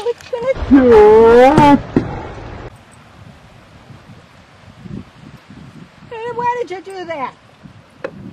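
A husky howls and whines loudly in long, wavering calls.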